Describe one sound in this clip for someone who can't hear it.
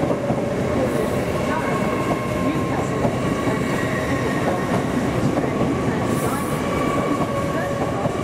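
A train rolls slowly past with a steady low rumble.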